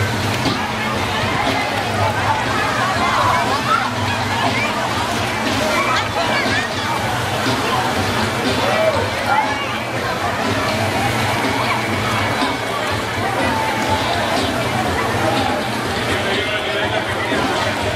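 Water splashes as people wade and move about.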